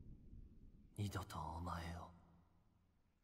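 A man speaks weakly and haltingly, close by.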